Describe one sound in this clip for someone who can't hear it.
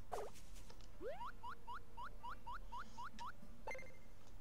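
Short rising electronic blips repeat quickly as a game character climbs a ladder.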